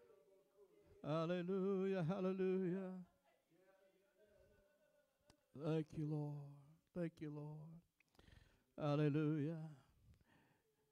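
A man speaks with feeling into a microphone in an echoing hall.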